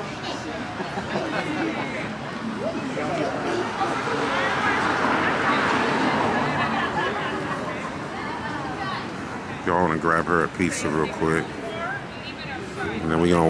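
Traffic hums on a nearby street.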